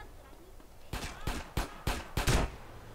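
Gunshots fire in quick succession.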